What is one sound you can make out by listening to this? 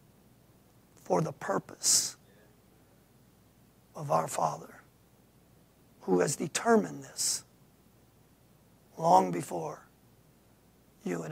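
A middle-aged man speaks calmly in short phrases with long pauses.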